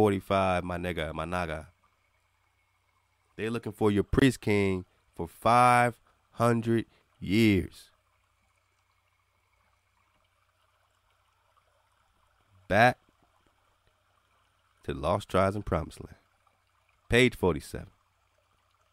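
A man speaks calmly and close by, in short phrases with long pauses.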